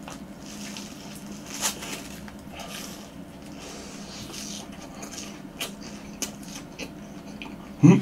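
A young man bites and chews crunchy fried food close to a microphone.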